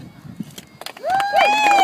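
Women whoop and cheer loudly close by.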